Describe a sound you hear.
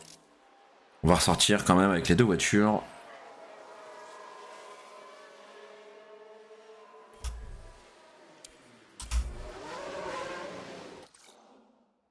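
Racing car engines whine and roar past.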